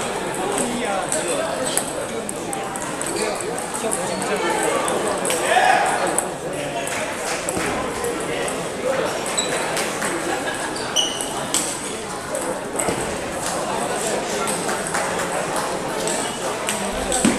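Table tennis balls click on paddles and tables in a large echoing hall.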